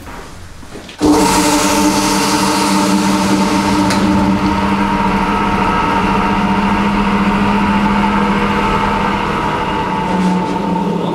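A large fan machine starts up and hums steadily with a loud whir.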